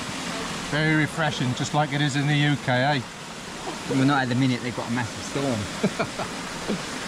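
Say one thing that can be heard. A man talks up close with animation.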